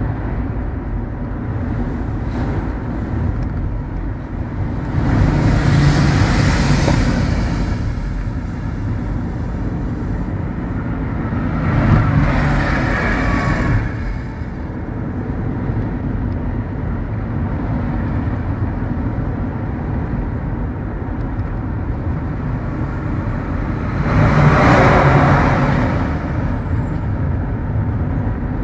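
A car's tyres rumble steadily on the road as the car drives.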